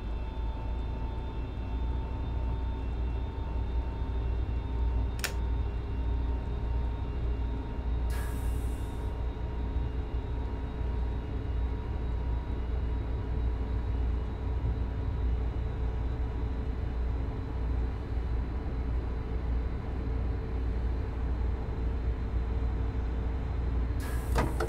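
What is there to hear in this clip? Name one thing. A train's wheels rumble low and steady over the rails.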